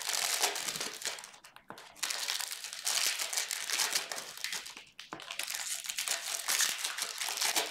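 Plastic wrapping crinkles and rustles as hands tear open a package.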